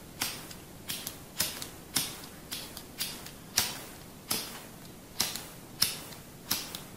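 Fingers snap sharply close to a microphone, again and again.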